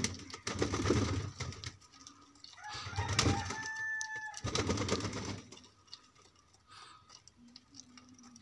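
Pigeons peck at grain close by.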